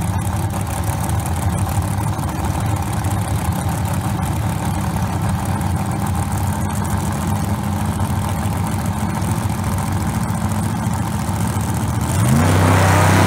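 Car engines idle loudly with a deep rumble.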